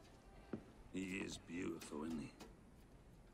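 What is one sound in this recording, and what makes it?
A middle-aged man speaks with animated, teasing warmth.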